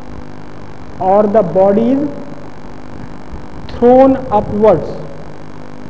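A man speaks to a class, heard from a distance in a large echoing hall.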